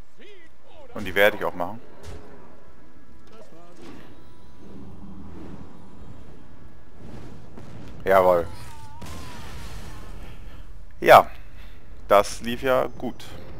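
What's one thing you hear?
Loud magical whooshes and crashes burst out now and then.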